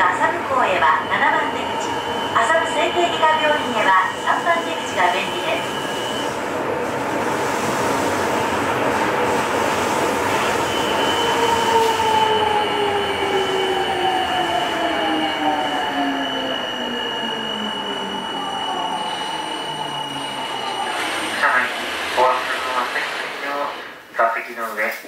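A subway train rumbles steadily along its track.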